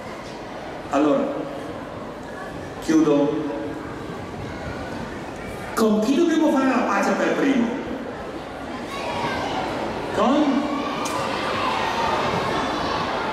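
A man speaks through a loudspeaker in a large space, with pauses.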